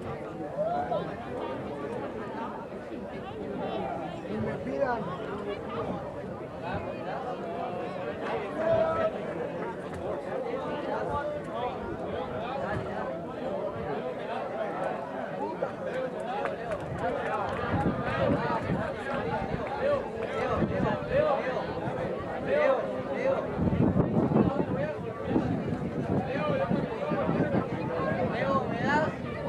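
Young women talk and call out nearby.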